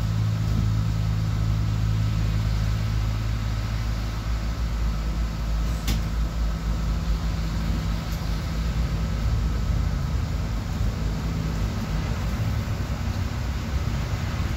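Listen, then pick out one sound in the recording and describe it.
A city bus engine hums from inside as the bus drives.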